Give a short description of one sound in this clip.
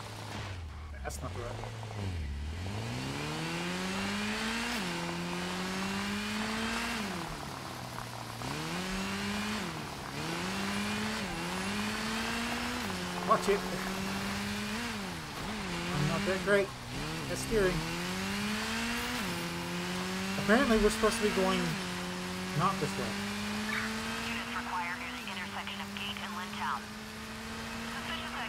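A motorcycle engine revs up and down as it speeds along.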